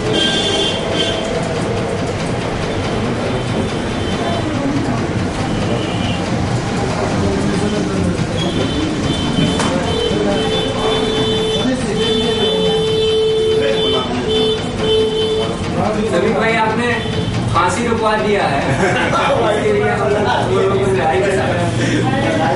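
Several men talk at once.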